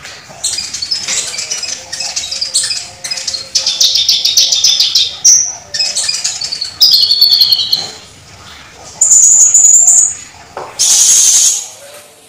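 A small bird sings loud, fast, chattering trills close by.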